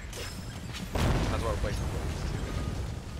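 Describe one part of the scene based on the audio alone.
A blade slashes into flesh with a heavy, sudden thud.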